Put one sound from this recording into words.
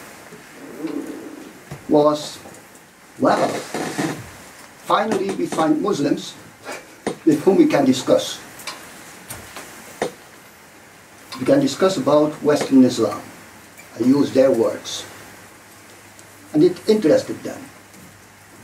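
An elderly man speaks calmly into a microphone, with pauses between phrases.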